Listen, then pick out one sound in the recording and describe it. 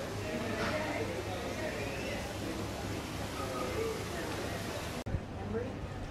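Men and women chatter at a distance outdoors.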